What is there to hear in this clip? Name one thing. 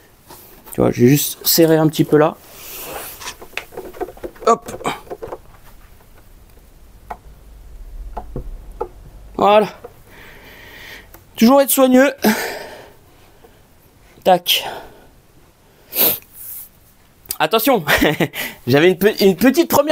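A man talks nearby with animation.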